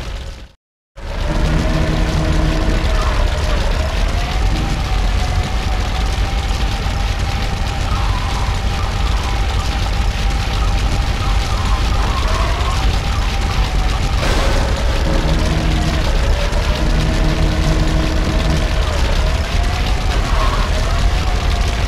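A small engine hums steadily, rising and falling in pitch as it drives.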